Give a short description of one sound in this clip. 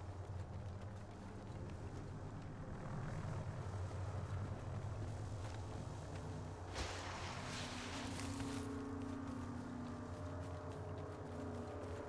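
Footsteps thud steadily on hard ground.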